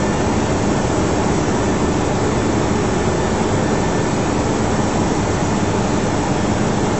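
Jet engines drone steadily from inside the cockpit.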